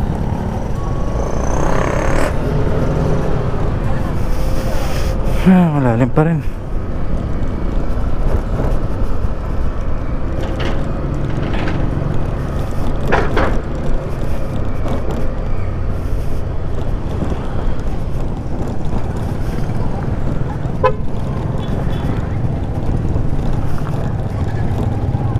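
A scooter engine hums steadily while riding.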